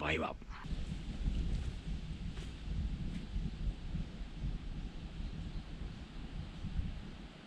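Wind rumbles low and gusty outdoors.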